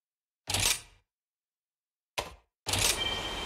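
A menu selection clicks.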